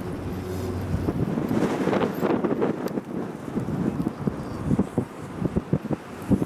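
A chairlift creaks and rattles as it runs along its cable.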